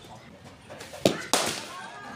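A cricket ball bounces on the pitch.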